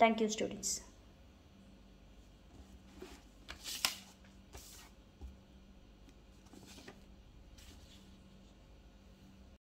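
Sheets of paper rustle and slide.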